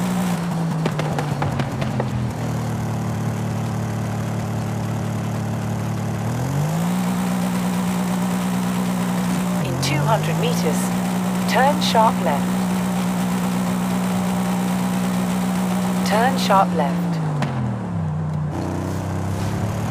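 A car engine hums steadily, revving up and easing off through gear changes.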